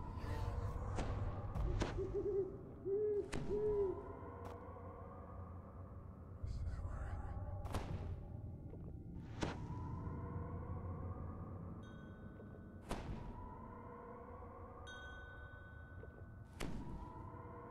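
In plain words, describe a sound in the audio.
Magic spells crackle and chime in sharp bursts.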